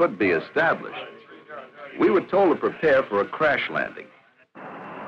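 A man speaks into a telephone.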